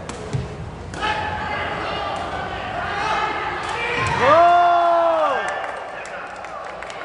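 A crowd cheers loudly after a rally.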